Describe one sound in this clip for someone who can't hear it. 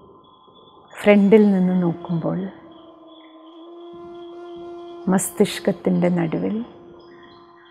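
A woman speaks calmly and closely into a microphone.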